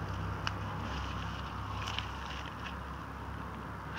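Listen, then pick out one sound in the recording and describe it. Roots tear loose from the soil as a plant is pulled up.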